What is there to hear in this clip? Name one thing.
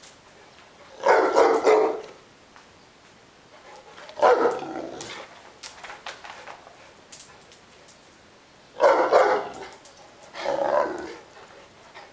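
A large dog barks loudly indoors.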